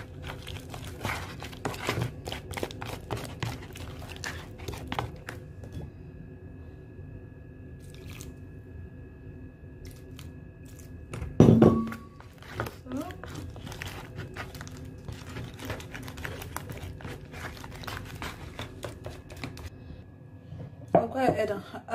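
A spoon scrapes and taps against a plastic tub.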